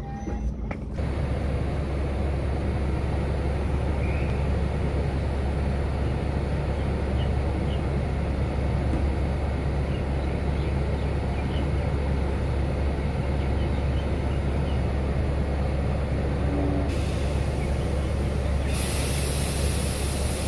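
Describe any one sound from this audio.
A train engine idles nearby with a deep steady drone.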